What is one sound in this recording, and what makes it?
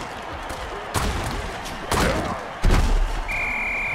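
Players collide with heavy thuds.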